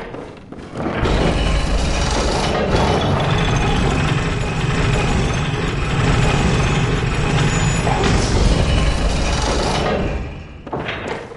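A lift rumbles and rattles loudly as it moves.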